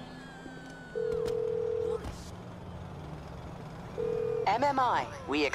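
A phone call rings out on the line in short beeps.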